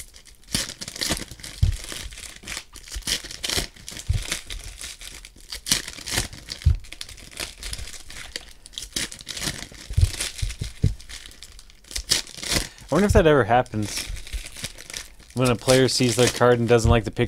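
Foil packs crinkle and rustle.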